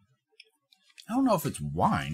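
A middle-aged man speaks loudly and with animation, close to a microphone.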